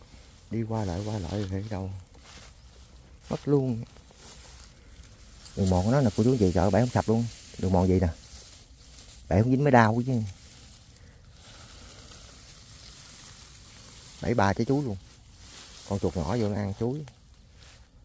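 Dry grass rustles underfoot.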